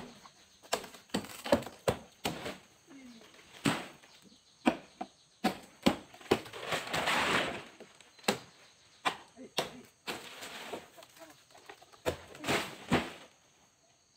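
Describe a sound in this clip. Sharp knocks and cracks sound from a palm tree as a man works high in it.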